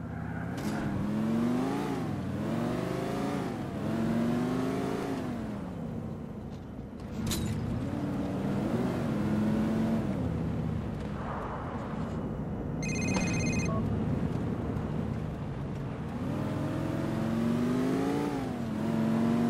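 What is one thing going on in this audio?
Car engines rev up and down loudly.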